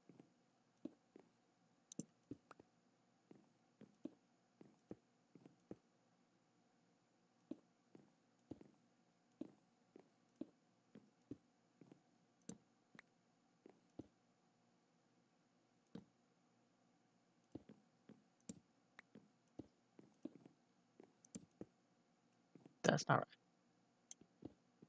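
Stone blocks clunk as they are placed one after another.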